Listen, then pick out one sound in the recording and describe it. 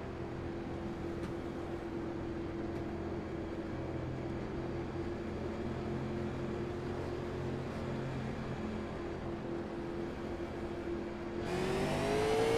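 A race car engine hums steadily at low speed.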